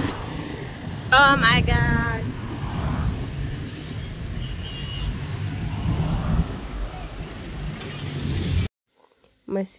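A woman talks close to the microphone, outdoors in traffic noise.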